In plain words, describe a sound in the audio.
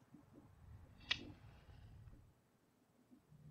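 A match strikes and flares.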